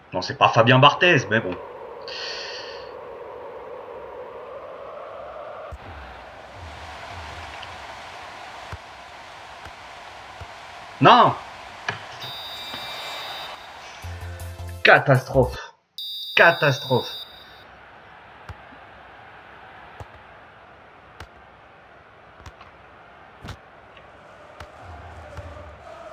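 A ball is kicked with dull thuds.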